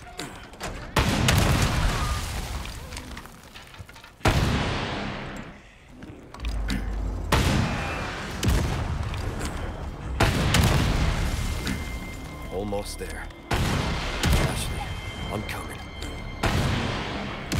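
A rocket launcher fires with a loud blast.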